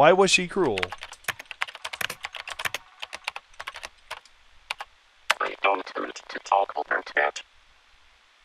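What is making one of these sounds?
Keys click rapidly on a keyboard.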